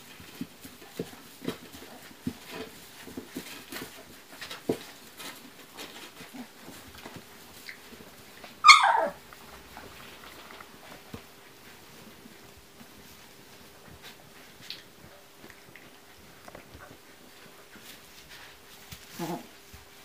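Puppies rustle and shuffle in dry straw.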